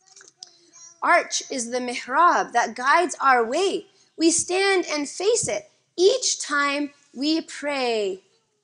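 A woman speaks with animation into a microphone, as if reading aloud.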